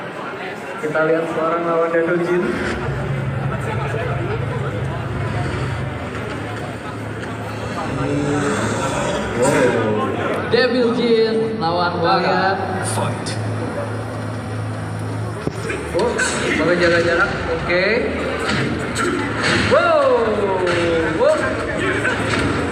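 Music and game sound effects play loudly through loudspeakers in a large echoing hall.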